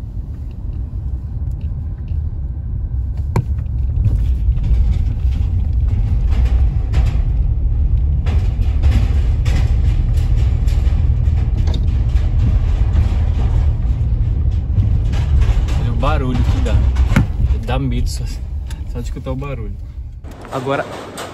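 Car tyres rumble loudly over a metal bridge deck.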